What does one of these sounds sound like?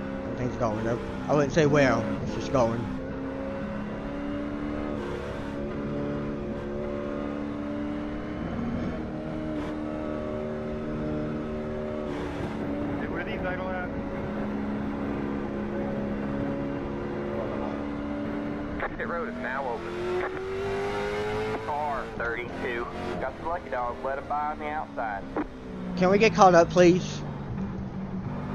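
A race car engine drones steadily at high revs.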